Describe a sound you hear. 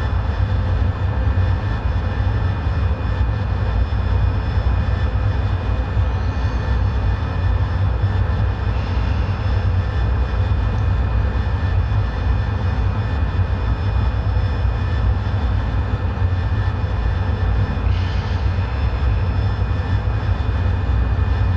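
A jet engine roars steadily with a deep rumble.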